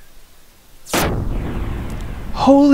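An energy beam sweeps past with a sharp whoosh.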